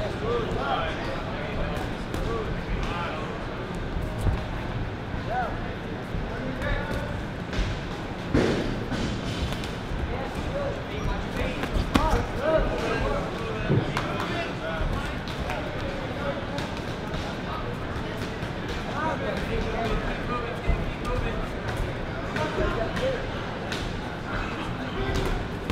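Boxing gloves thud against padded headgear and gloves.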